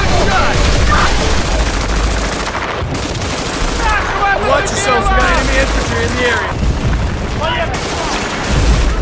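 A heavy machine gun fires in long, rapid bursts.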